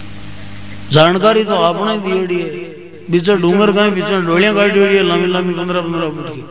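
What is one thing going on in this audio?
A man sings loudly through a microphone and loudspeakers.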